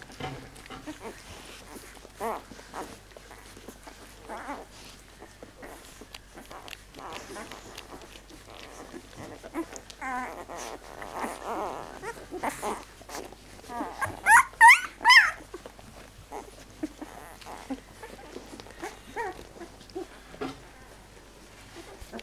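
Puppies suckle with soft wet smacking sounds.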